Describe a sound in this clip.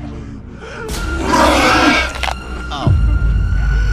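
A monster lets out a loud, harsh shriek.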